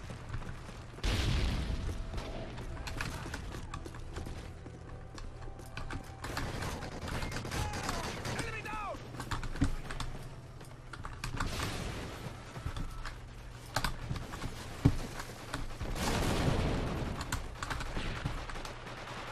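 Keys on a keyboard click.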